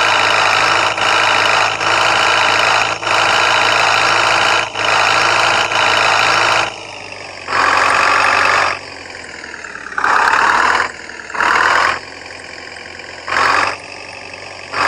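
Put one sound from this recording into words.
A van engine hums and revs, rising and falling in bursts.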